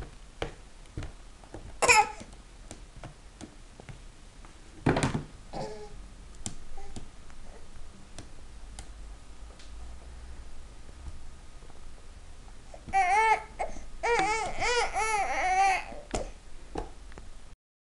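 A baby slaps a plastic tray with its hands.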